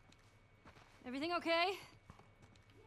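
A young woman calls out loudly.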